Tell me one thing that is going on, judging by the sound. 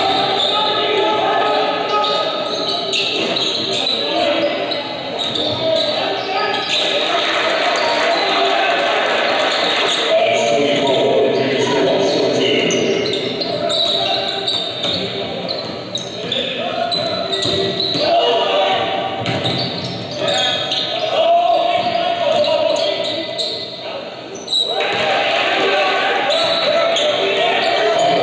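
A crowd cheers and chatters in a large echoing gym.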